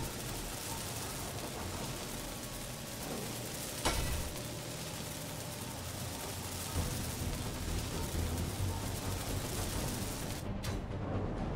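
A welding torch hisses and crackles steadily.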